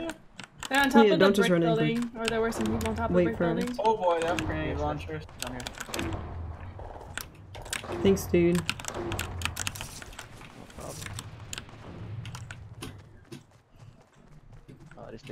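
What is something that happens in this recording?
Footsteps patter quickly as a game character runs.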